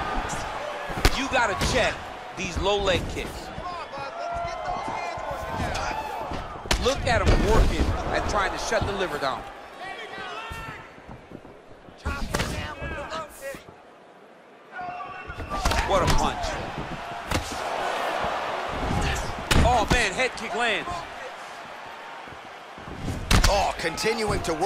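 Punches and kicks thud hard against bodies.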